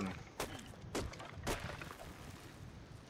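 An axe chops into wood with sharp thuds.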